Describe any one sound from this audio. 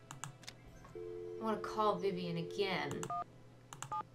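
A rotary phone dial whirs and clicks.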